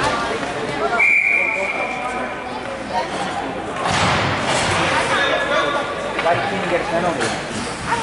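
Ice skates scrape and glide across an ice rink.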